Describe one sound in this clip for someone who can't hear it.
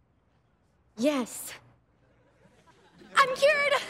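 A young woman speaks playfully nearby.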